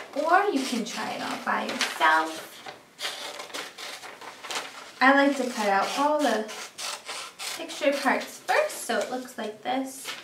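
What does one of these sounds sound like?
Paper rustles and crinkles as it is folded.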